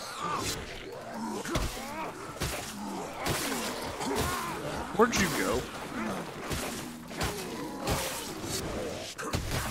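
Creatures growl and snarl close by.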